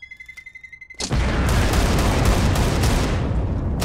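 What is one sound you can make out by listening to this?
A huge explosion booms and rumbles on.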